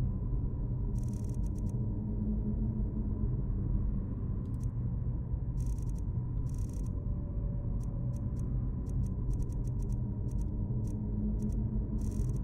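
Soft game menu clicks tick repeatedly.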